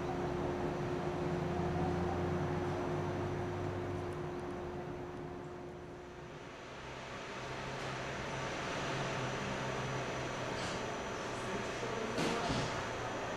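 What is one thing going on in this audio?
A locomotive engine hums steadily while idling nearby.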